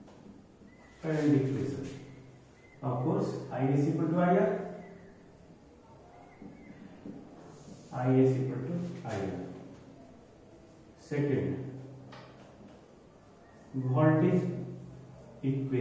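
A man speaks clearly and steadily, like a teacher explaining.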